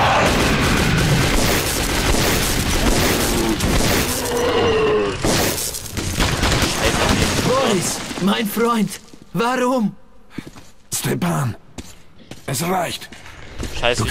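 A monster snarls and roars.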